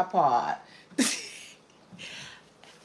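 An older woman laughs.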